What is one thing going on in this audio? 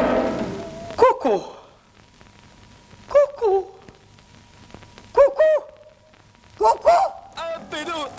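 A woman sobs and wails loudly.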